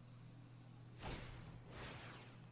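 A game sound effect whooshes.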